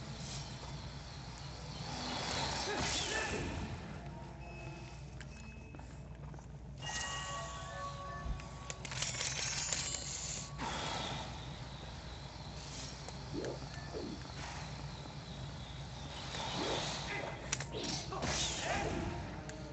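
A sword swishes through the air in quick strikes.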